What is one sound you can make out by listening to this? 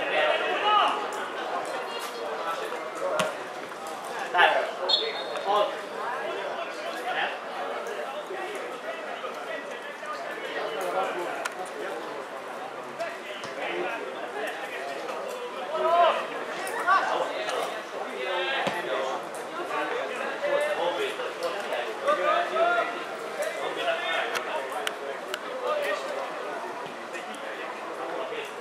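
Football players shout to each other across an open field.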